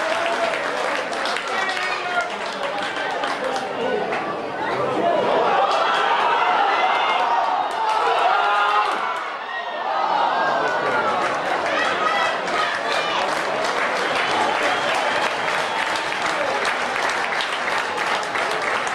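A crowd cheers and shouts in an open stadium.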